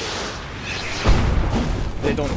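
A heavy thud sounds as a figure lands on a roof.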